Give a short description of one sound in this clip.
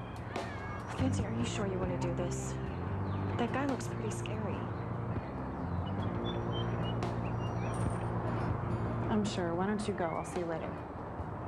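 A young woman speaks quietly and urgently nearby.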